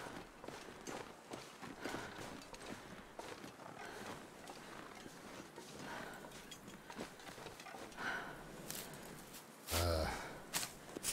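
Footsteps crunch through snow at a steady pace.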